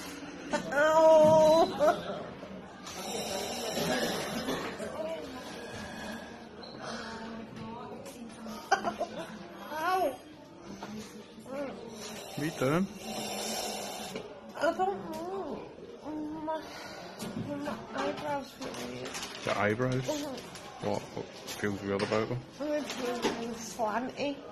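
A young woman groans and speaks close by.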